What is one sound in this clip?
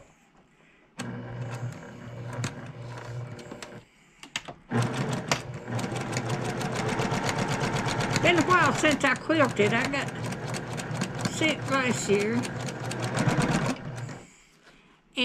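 A sewing machine runs with a fast, steady clatter.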